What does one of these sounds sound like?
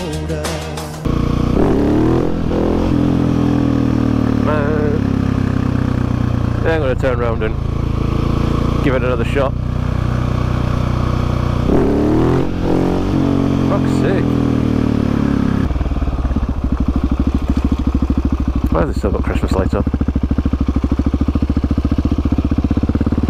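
A motorcycle engine roars close by, revving up and down as it shifts gears.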